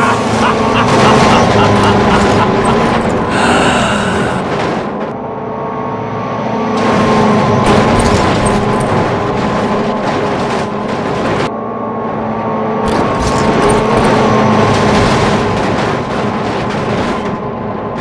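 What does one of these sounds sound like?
A bridge collapses with loud crashes of metal.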